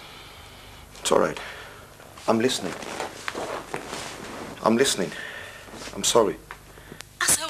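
A man speaks calmly into a phone, close by.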